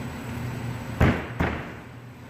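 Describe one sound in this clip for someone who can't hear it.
A board is slapped down flat with two sharp thuds.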